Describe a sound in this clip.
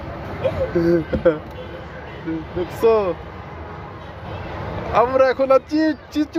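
A child talks excitedly close by.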